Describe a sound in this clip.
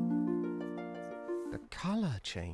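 A short melody of bright synthesized notes plays.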